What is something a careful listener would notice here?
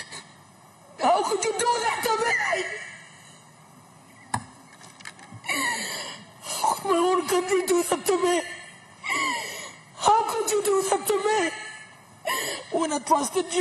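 A woman speaks firmly into a microphone in a large room with a slight echo.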